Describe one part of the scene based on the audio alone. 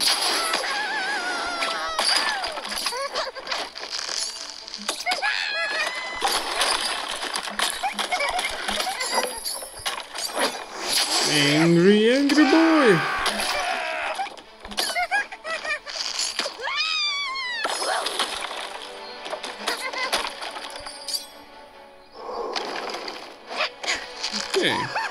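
A slingshot twangs as it launches.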